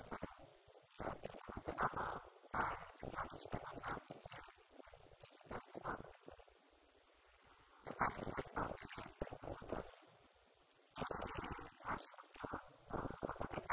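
A woman speaks calmly into a microphone, with pauses.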